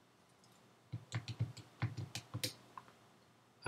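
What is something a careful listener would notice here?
Calculator keys click as they are pressed.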